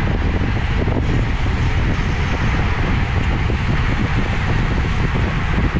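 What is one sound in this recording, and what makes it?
Strong wind rushes past loudly outdoors.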